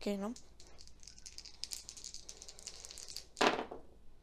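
Dice rattle and clatter onto a hard surface.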